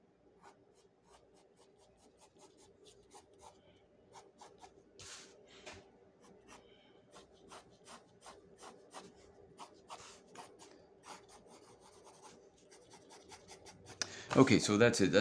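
A pencil scratches lightly across paper in short, quick strokes.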